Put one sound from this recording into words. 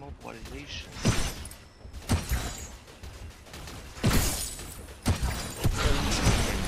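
Blows strike and clash in a fight.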